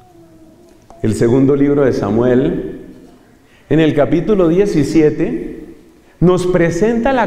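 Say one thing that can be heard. A man speaks with animation through a microphone in an echoing room.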